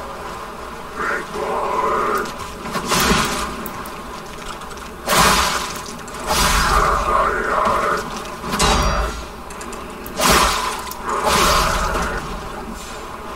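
Weapons slash and strike in a fight.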